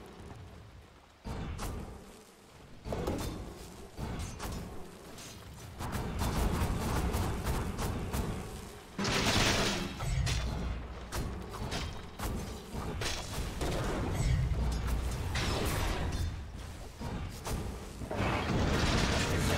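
Game spells blast and crackle during a fight.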